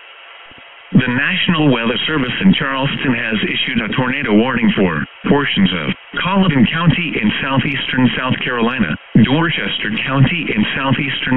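A computerised voice reads out a warning over a small loudspeaker.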